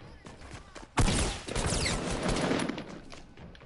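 Rapid gunshots fire close by.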